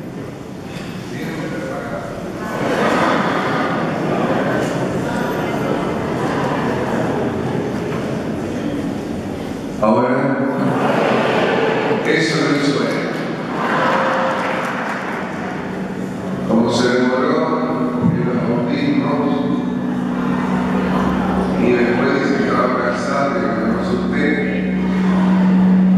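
A middle-aged man speaks with animation through a microphone, echoing in a large hall.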